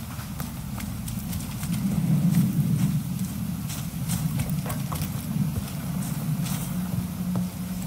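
Footsteps tread on wet, muddy ground.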